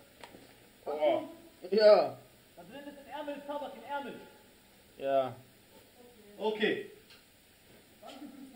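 A young man calls out loudly nearby.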